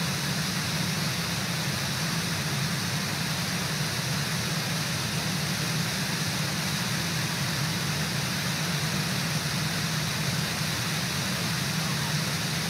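A waterfall roars steadily nearby.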